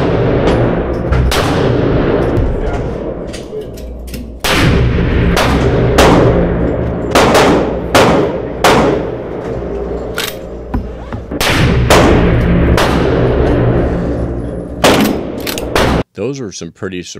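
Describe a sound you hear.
Gunshots boom and echo loudly in an indoor range.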